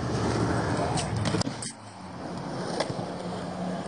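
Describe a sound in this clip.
A skateboard clacks against concrete.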